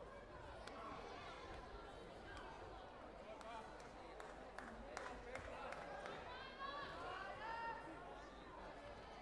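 Voices of a small crowd murmur and call out in a large echoing hall.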